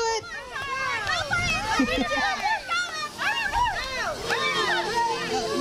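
Children shout and cheer excitedly outdoors.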